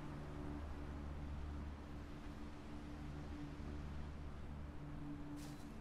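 An electronic device hums softly and steadily.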